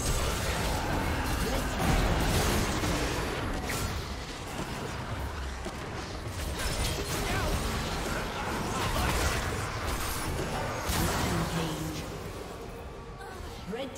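Magic sound effects whoosh and crash in a fast fight.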